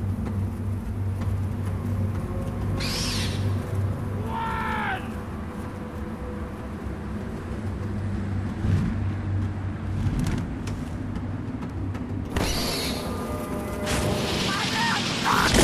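Wind rushes steadily past a bird in flight.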